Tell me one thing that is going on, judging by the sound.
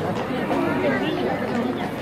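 Horse hooves clop on pavement.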